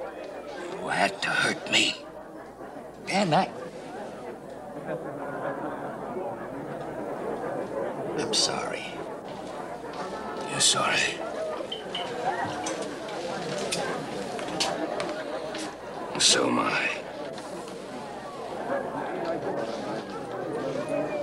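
A middle-aged man speaks urgently in a low voice, close by.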